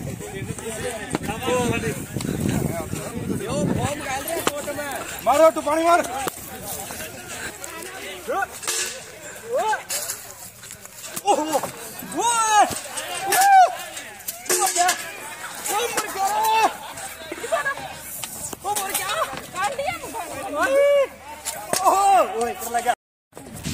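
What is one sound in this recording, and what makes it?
A woman shouts angrily close by.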